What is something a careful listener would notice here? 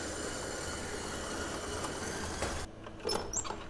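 An electric stand mixer whirs steadily, then stops.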